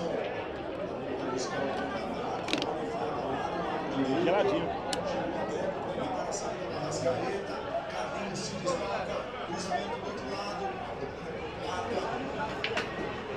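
A crowd of men chatters loudly in a room.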